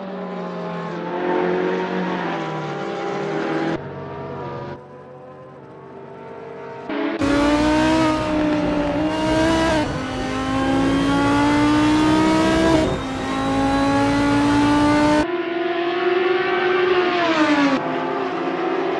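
A racing car engine roars at high revs, rising and falling in pitch.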